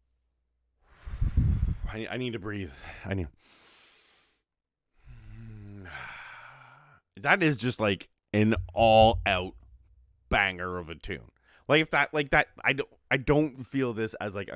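A man with a deep voice talks with animation into a close microphone.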